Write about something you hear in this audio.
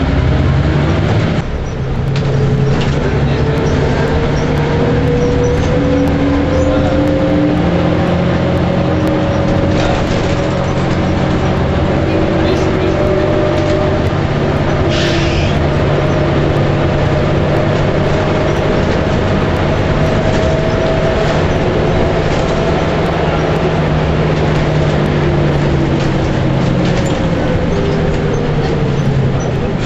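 A bus engine hums and drones steadily, rising and falling in pitch as it drives.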